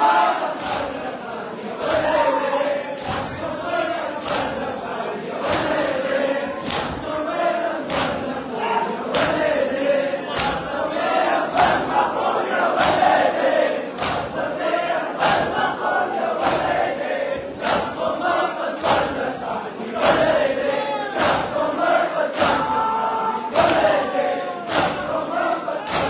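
A crowd of men beat their chests in a steady rhythm of loud slaps.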